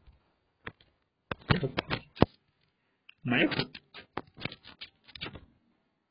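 Phone keyboard taps click in quick bursts.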